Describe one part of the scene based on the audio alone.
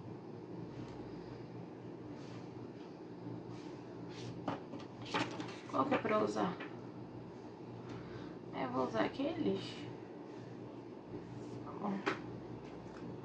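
Cards are set down on a table with soft taps.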